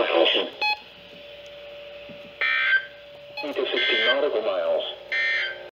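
Radio receivers play short bursts of transmissions through small loudspeakers.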